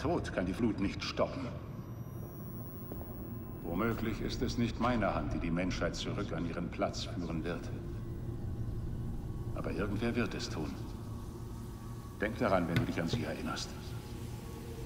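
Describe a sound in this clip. A man speaks calmly and gravely, close by.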